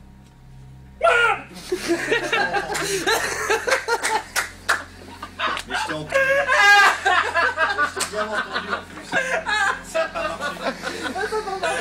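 Several men talk and laugh loudly in a small room.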